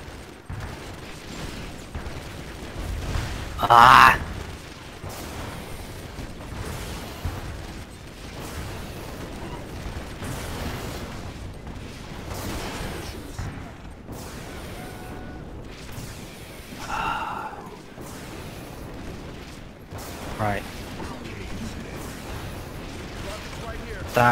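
Guns fire in rapid bursts in a battle.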